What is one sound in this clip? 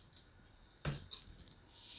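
A hand pats dough on a wooden board.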